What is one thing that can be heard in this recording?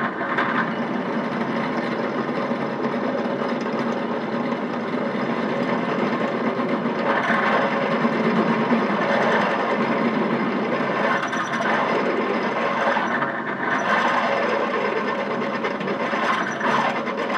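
A drill bit grinds and squeals into metal.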